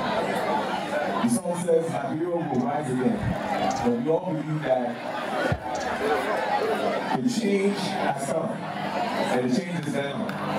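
A man speaks with animation through a microphone and loudspeakers outdoors.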